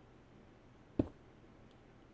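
A block thuds into place in a video game.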